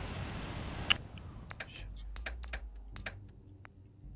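Short clicks tick in quick succession.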